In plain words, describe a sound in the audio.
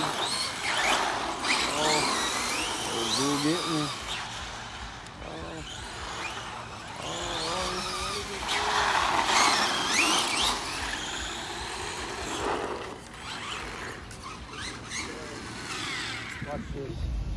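Small electric motors whine and rev up and down as toy cars race around.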